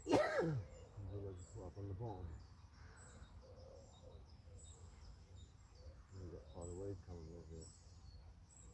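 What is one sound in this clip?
A man talks nearby outdoors with animation.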